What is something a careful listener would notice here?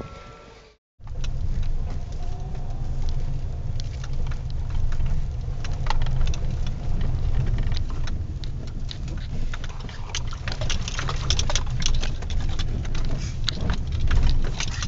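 Gravel crunches and rattles under car tyres.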